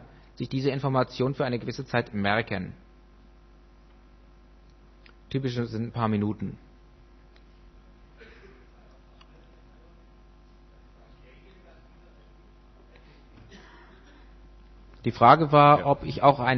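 A man speaks into a microphone in short bursts, heard through a loudspeaker.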